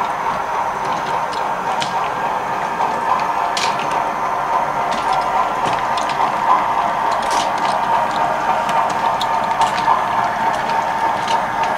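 A model train rolls along the track with a steady whirring hum.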